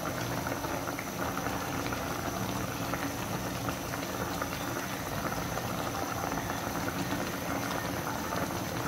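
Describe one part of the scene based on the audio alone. Liquid bubbles and simmers steadily in a pan.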